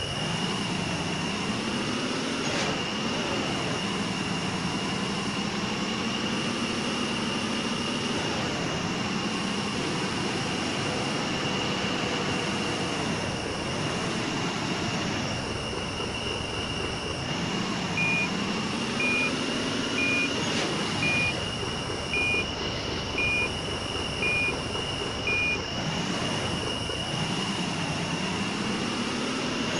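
A truck engine rumbles and revs up and down as it drives.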